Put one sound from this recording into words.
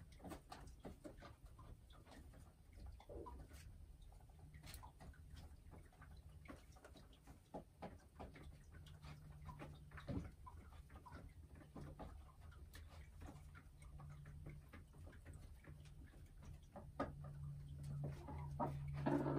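A hen murmurs and clucks softly close by.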